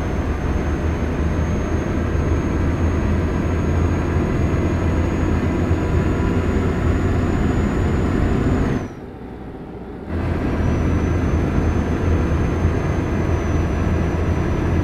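A heavy truck engine drones steadily, briefly dropping away for a moment.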